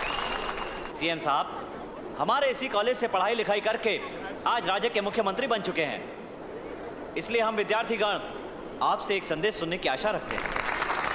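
A man speaks forcefully into a microphone over loudspeakers in a large hall.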